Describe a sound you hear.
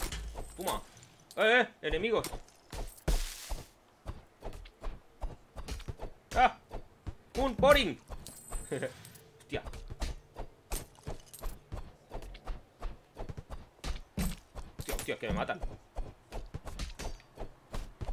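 Sword swings and hits clatter rapidly.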